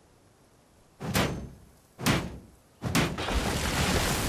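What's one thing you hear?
Heavy blows thud against a metal barrel.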